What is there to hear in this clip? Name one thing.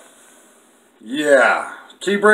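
A middle-aged man speaks close to the microphone.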